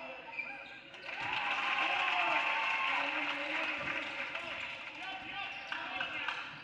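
A crowd cheers loudly after a basket, then dies down.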